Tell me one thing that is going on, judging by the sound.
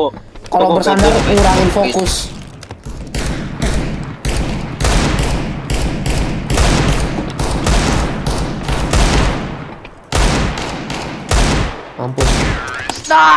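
Pistol shots ring out sharply, one after another.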